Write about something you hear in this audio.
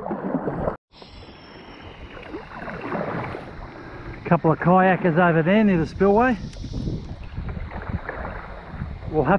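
A paddle splashes and swishes through water in steady strokes.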